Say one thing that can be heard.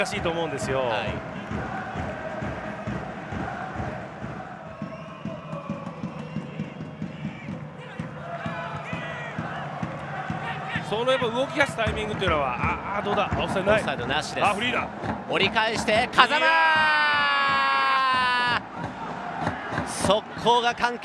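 A large crowd cheers and chants in a stadium.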